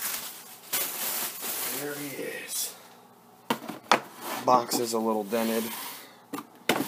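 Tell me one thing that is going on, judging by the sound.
Cardboard flaps rustle and scrape as a box is handled.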